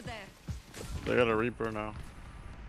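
An explosion bursts with a loud bang.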